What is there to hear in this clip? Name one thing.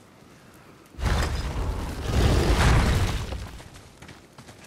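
Heavy wooden doors rumble and grind open.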